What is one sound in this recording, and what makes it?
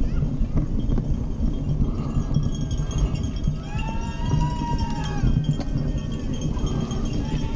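Bicycle tyres rumble over a rough path.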